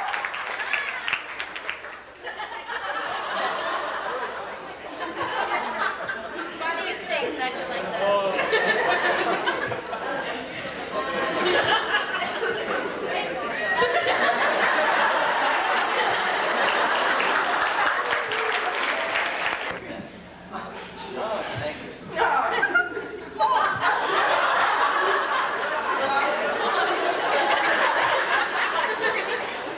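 A woman reads aloud clearly in an echoing hall.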